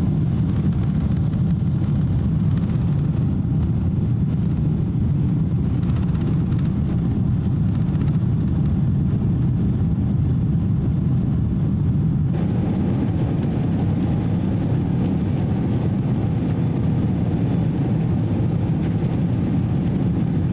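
Jet engines roar steadily inside an airliner cabin as it climbs.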